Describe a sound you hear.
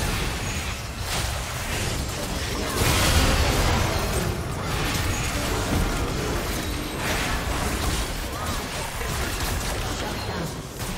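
Magic blasts and impacts crackle and boom in a busy game battle.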